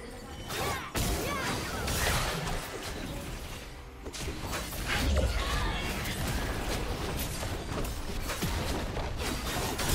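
Spell effects burst and clash in a game fight.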